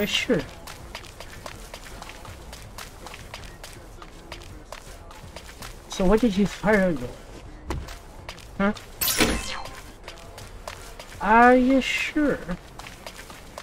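Footsteps patter quickly on hard ground.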